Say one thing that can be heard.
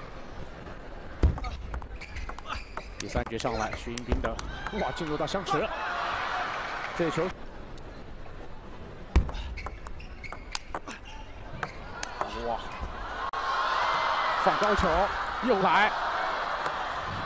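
A ping-pong ball clicks sharply back and forth on paddles and a table.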